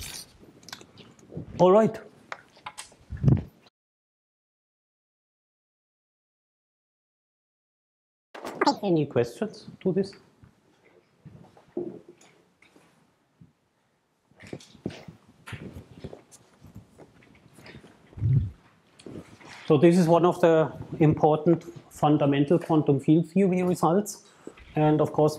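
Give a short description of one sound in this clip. A middle-aged man lectures calmly.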